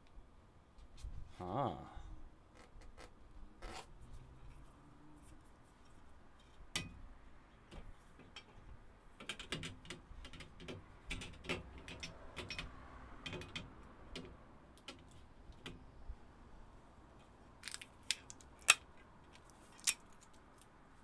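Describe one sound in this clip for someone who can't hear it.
Plastic parts click and rattle nearby.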